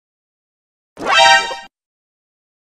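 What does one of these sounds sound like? A dog howls.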